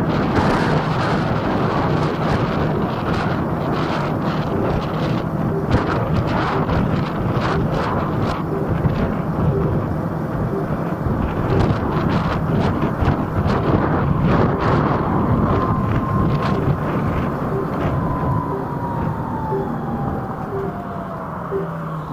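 Wind rushes loudly past a moving scooter outdoors.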